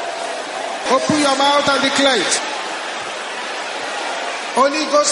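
A man speaks loudly and fervently.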